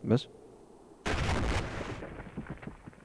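A loud explosion bursts and rumbles away.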